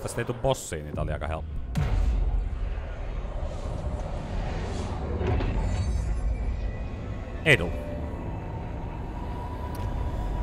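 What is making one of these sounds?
A low drone hums in a large echoing space.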